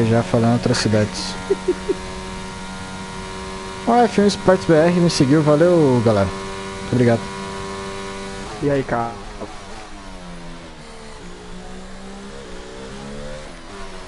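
A racing car engine roars steadily, its pitch rising and falling as the car changes gear.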